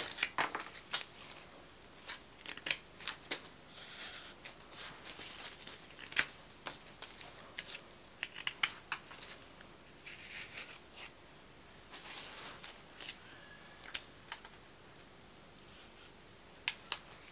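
Rose stems push into floral foam with soft rustling and crunching.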